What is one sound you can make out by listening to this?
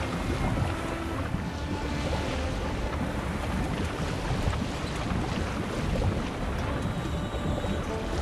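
Waves splash steadily against a small sailing boat's hull.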